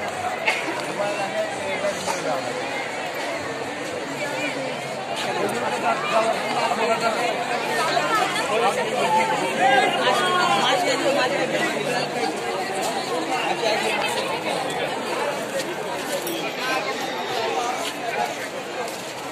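A crowd of men and women chatters loudly all around, outdoors.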